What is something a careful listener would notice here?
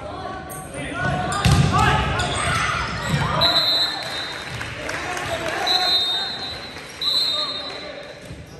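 A crowd of spectators cheers and shouts.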